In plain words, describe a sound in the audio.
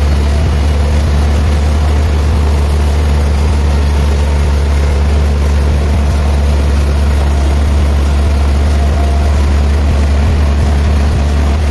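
A large band saw runs with a steady low hum as it cuts through a thick log.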